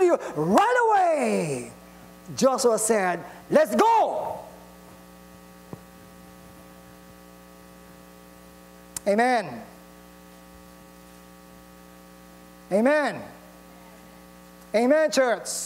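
A middle-aged man speaks with animation through a microphone in a large echoing hall, in short bursts between pauses.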